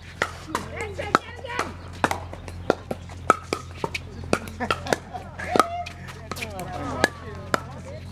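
Pickleball paddles pop against a plastic ball outdoors.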